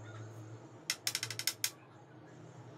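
A spark plug clicks and taps against metal as it is pulled from an engine.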